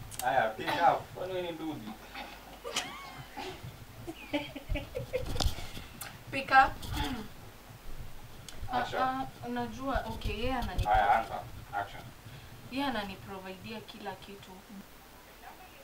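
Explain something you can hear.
A second young woman answers close by.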